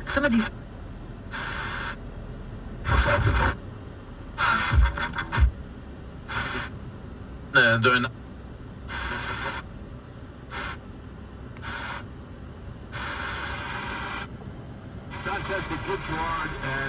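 A car radio scans through FM stations, with brief bursts of broadcasts between quiet gaps.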